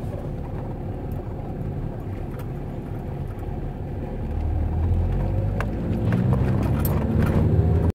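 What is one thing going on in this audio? A car engine hums steadily while driving slowly, growing louder toward the end.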